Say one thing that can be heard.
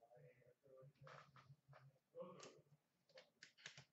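A plastic card case clicks as it is set down.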